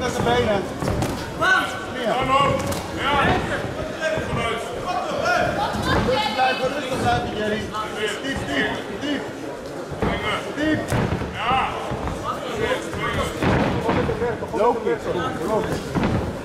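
Kicks and punches thud against bodies.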